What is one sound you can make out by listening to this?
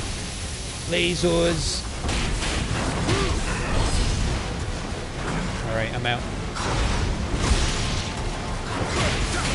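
Magical blasts crackle and boom.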